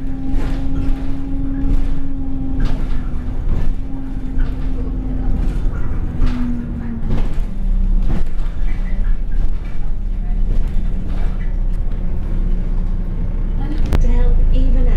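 Loose bus panels rattle and knock over bumps.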